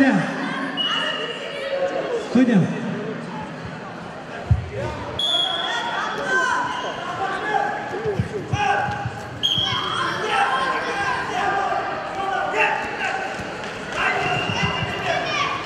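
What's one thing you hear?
A crowd of spectators chatters and shouts in a large echoing hall.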